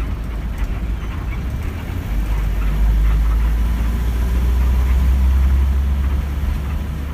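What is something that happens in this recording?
Rattles and creaks sound from the moving bus.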